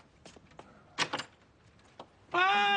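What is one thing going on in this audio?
A door latch clicks and the door opens.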